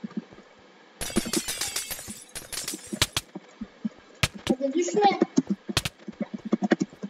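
A sword strikes with short, sharp hits.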